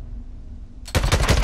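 A rifle fires loud shots in quick succession.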